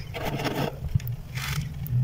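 A hand squeezes loose frost, which crunches.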